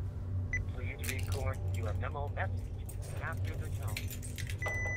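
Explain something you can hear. Keys jingle in a hand.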